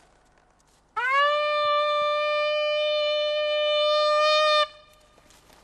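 A hunting horn blows a long, steady call.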